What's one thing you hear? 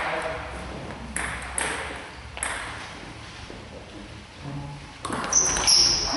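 A table tennis ball clicks back and forth between paddles and the table in an echoing hall.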